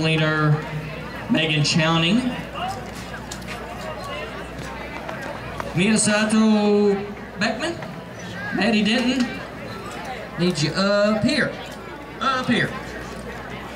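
A man speaks into a microphone over loudspeakers outdoors, announcing with animation.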